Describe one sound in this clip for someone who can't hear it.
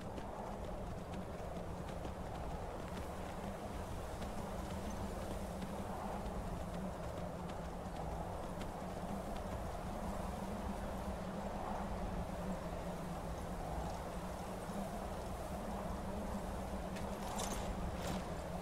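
A horse's hooves thud steadily on snow.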